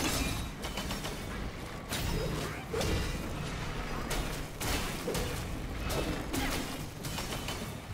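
Fiery blasts whoosh and roar.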